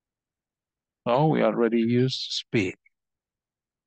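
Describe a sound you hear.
A man speaks briefly through a microphone.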